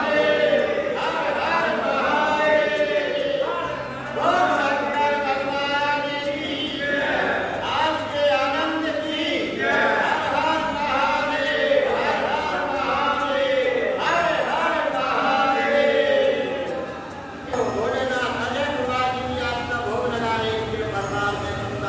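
A group of men chant together.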